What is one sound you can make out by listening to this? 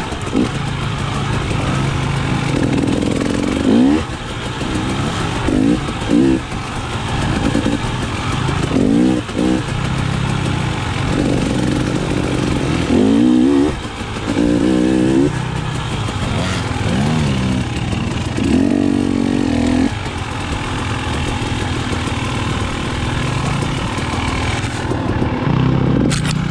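Tyres rumble over a bumpy dirt trail.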